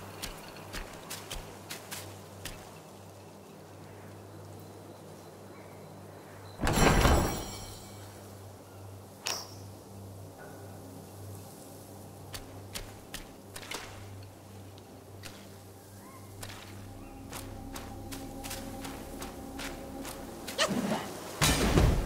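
Footsteps crunch on leaves and dirt.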